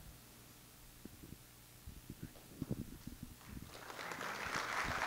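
A younger man speaks quietly into a microphone.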